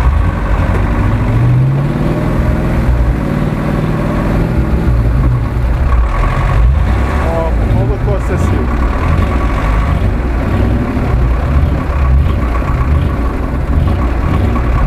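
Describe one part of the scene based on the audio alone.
Tyres churn and squelch through deep mud.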